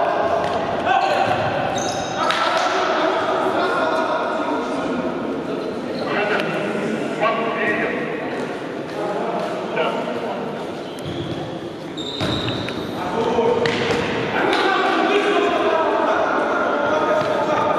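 A ball thuds as it is kicked across a wooden floor.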